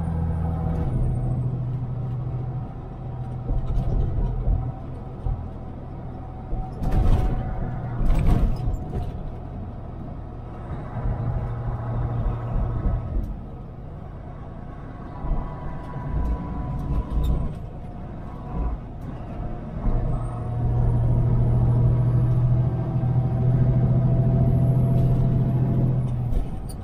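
A truck engine drones steadily, rising and falling as it drives along a road.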